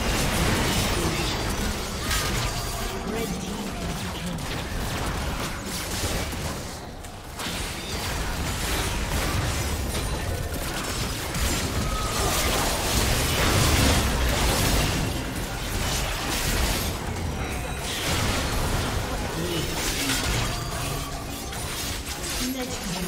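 Game spell effects crackle, whoosh and clash in a busy battle.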